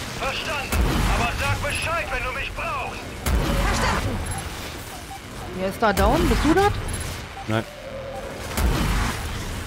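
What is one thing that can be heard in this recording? Gunshots bang sharply now and then.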